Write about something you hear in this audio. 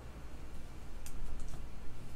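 A plastic card sleeve rustles and crinkles close by.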